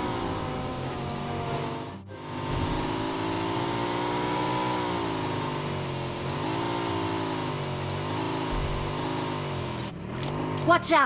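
A motorcycle engine revs and hums, rising and falling in pitch.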